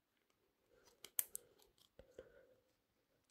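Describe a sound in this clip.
Small plastic parts click and tap together.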